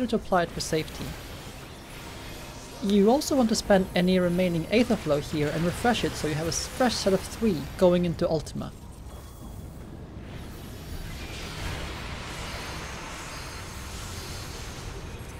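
Magic blasts burst and crackle.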